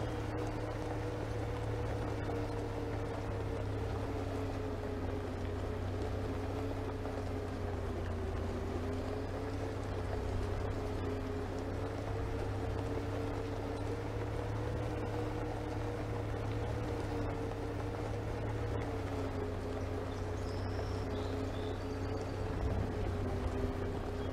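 A bus engine drones steadily.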